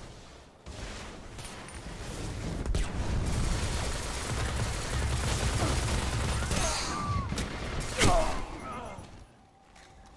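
Automatic gunfire bursts in a video game.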